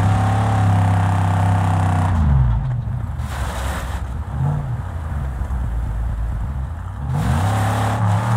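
Tyres crunch over sand and gravel.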